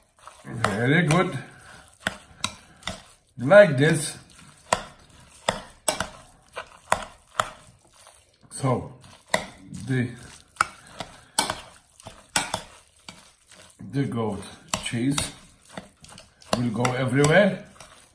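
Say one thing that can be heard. A wet, chunky mixture squelches as it is stirred.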